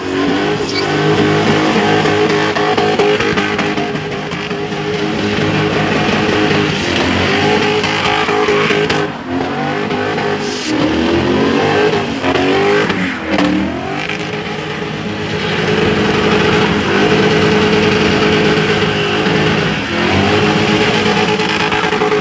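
A car engine revs hard and roars close by.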